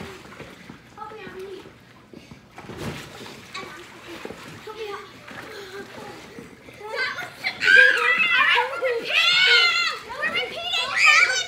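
Water splashes as girls paddle on pool floats.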